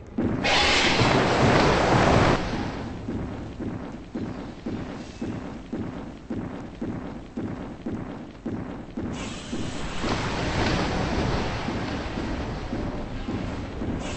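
A creature swims through water with rhythmic splashing.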